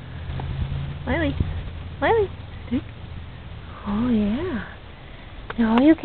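A puppy whines in short, high, wavering cries close by.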